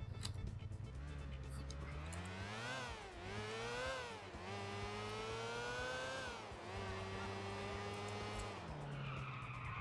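A motorcycle engine revs up and down as it speeds along a street.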